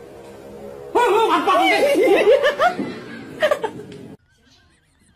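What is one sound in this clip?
A young man talks with animation close by.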